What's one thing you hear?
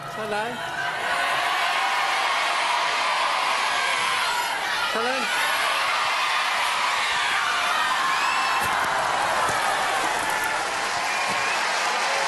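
A large audience laughs and cheers loudly in a big hall.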